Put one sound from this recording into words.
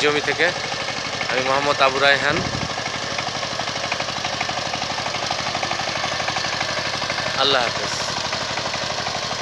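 A small diesel engine chugs steadily and fast.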